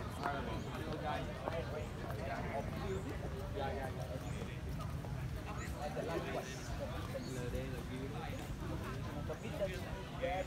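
Footsteps shuffle on pavement.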